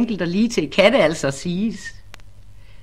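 A middle-aged woman speaks with animation through a recording.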